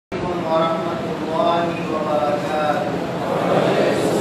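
A man speaks steadily into a microphone, heard through loudspeakers.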